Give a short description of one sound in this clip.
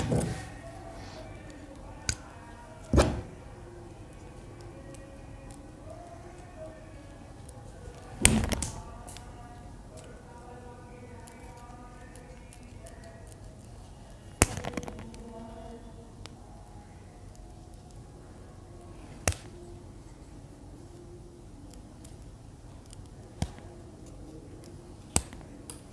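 Pliers snip and click on wire.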